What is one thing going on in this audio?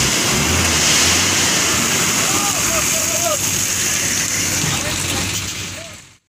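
Gravel pours and rattles out of a tipping truck bed.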